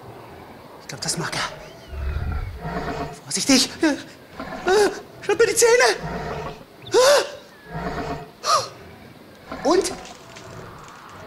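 A man speaks and exclaims excitedly into a microphone, close by.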